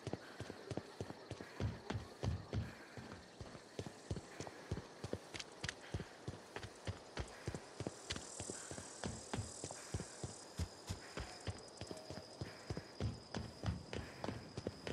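Footsteps thud steadily on a stone path.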